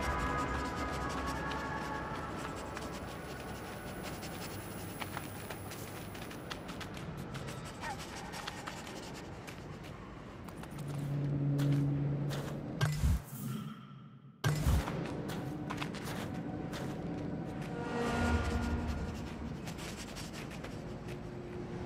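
A small animal's light footsteps patter steadily on crunchy snow and hard ground.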